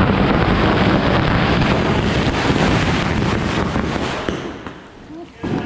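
Fireworks hiss and crackle loudly nearby.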